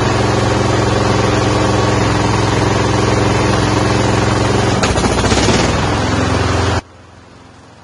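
A lawn mower engine idles loudly and steadily, then cuts off.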